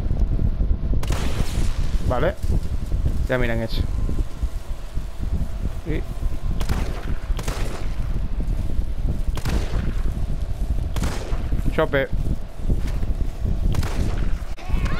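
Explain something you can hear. Gunshots fire one after another.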